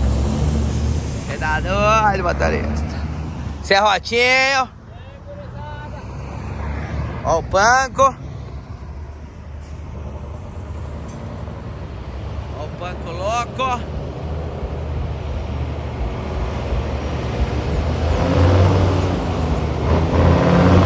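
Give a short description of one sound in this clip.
A truck engine rumbles as it drives past on the road.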